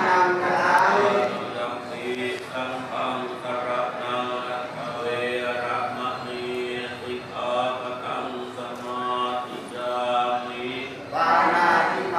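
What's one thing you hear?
An elderly monk recites a chant.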